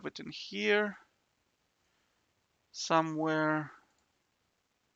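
A man speaks briefly into a microphone, close up.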